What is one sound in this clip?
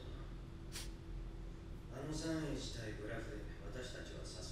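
A young woman chuckles softly close by.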